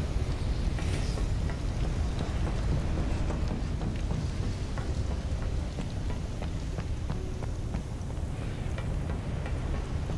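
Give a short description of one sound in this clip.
Footsteps clank on metal walkways.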